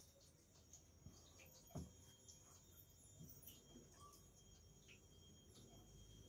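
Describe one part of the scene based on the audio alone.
Objects clink softly as a hand places offerings on a small altar.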